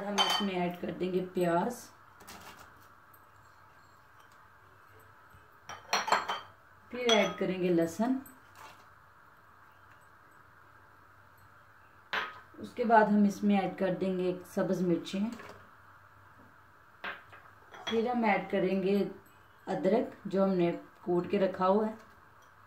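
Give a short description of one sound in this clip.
Chopped food drops into a metal pot.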